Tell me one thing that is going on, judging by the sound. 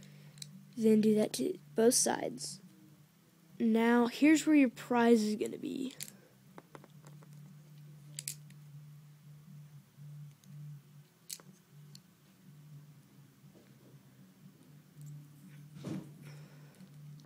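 Plastic toy bricks click and snap together.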